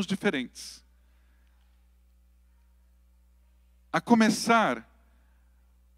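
A middle-aged man speaks calmly into a microphone, with long pauses.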